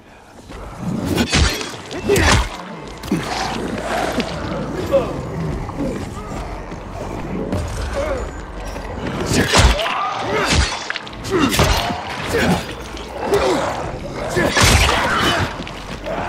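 An axe strikes zombies with heavy, wet thuds.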